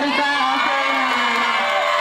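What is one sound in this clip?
A crowd of young people claps.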